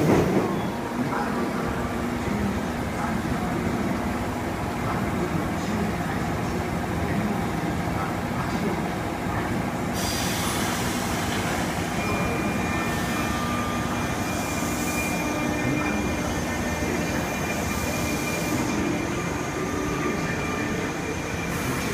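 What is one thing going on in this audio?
An electric train hums and rumbles slowly along the track nearby.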